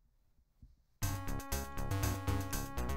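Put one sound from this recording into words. Upbeat electronic game music starts playing.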